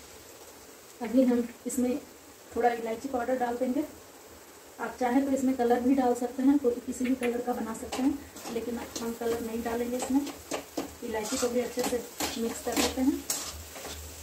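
A woman talks calmly close to a clip-on microphone.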